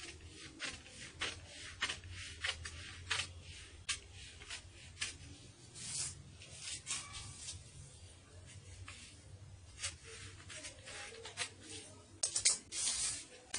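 Scissors snip through stiff paper with quick crisp clicks.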